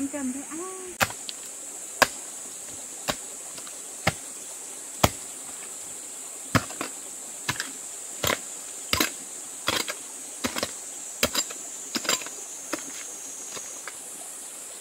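A hoe strikes hard earth again and again.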